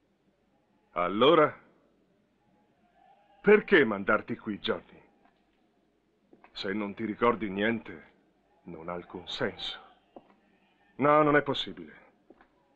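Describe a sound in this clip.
A middle-aged man speaks firmly nearby.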